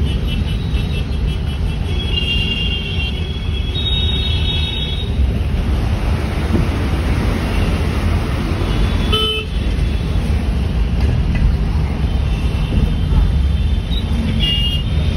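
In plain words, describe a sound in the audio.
Traffic rumbles steadily past, heard from inside a moving car.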